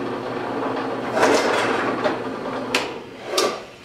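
A drill bit bores into wood with a rough grinding noise.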